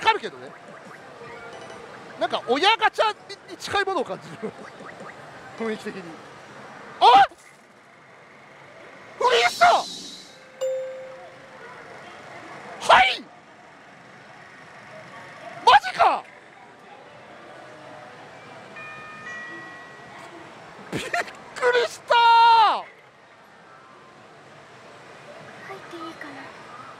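A slot machine plays electronic sounds.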